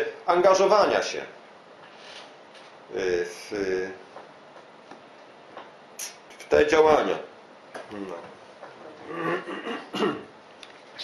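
An older man speaks slowly and calmly, with pauses.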